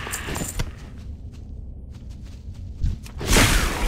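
Blades strike a creature in a fight.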